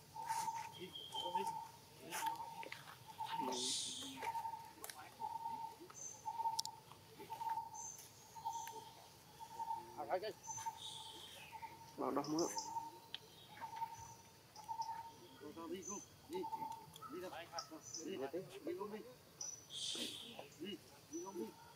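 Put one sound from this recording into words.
Dry leaves rustle as monkeys shift on the ground.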